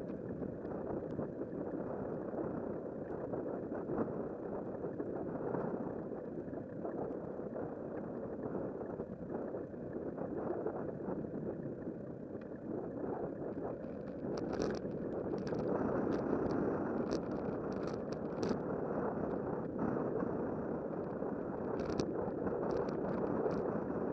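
Wind rushes and buffets steadily against the microphone outdoors.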